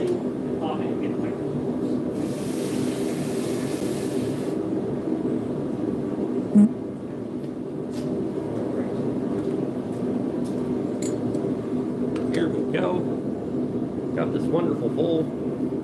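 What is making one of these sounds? A forge burner roars steadily.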